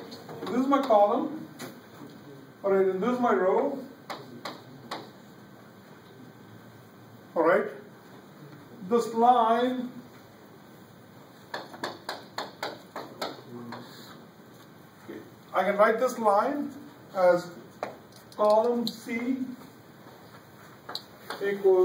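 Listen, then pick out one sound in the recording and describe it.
An elderly man speaks in bursts, lecturing.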